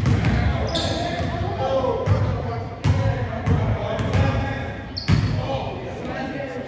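A basketball bounces with echoing thumps on a hard floor.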